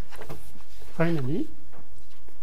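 A young man briefly says a word, close by.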